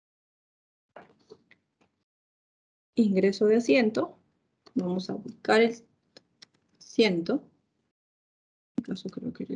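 A woman speaks calmly through an online call, in short bursts.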